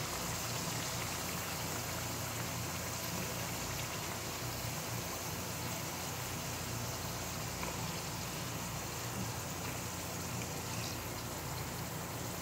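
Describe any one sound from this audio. Metal tongs clink against a pan.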